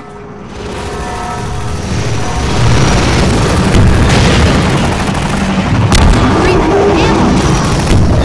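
A flying gunship roars overhead with a deep, rising drone.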